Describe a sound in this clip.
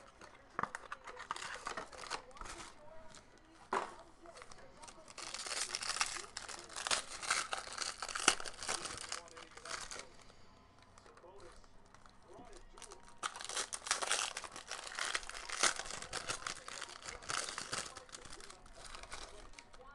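Foil wrappers crinkle and rustle as they are torn open.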